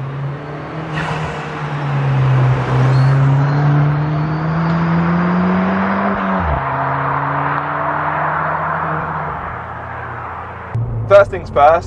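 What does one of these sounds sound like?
Tyres hiss on the road as a car passes close by.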